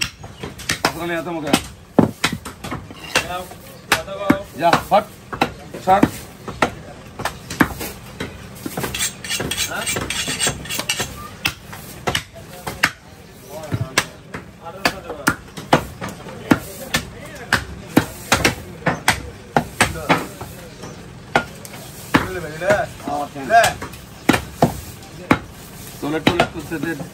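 A cleaver chops through meat onto a wooden chopping block.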